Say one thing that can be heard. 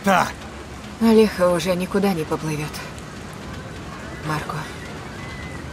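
A young woman speaks with urgency, close by.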